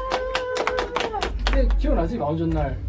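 Young men clap their hands.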